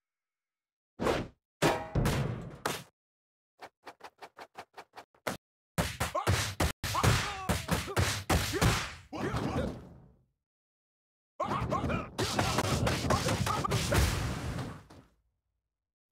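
Punches and kicks land with heavy thuds and smacks.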